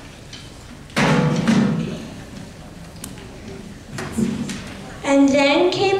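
A child speaks loudly on stage through a microphone.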